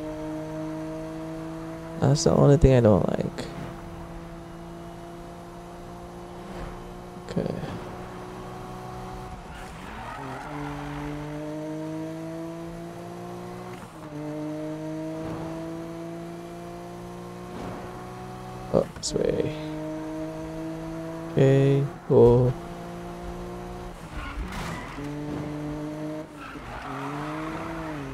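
A car engine roars and climbs in pitch, dropping with each gear change.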